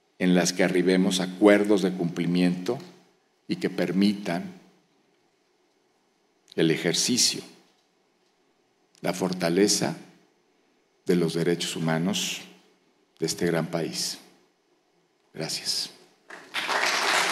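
A middle-aged man speaks calmly into a microphone in a large echoing hall, with pauses between phrases.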